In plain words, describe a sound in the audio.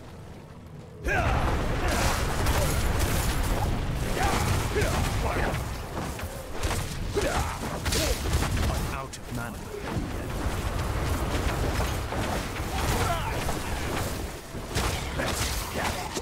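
Fiery blasts roar and crackle in rapid bursts.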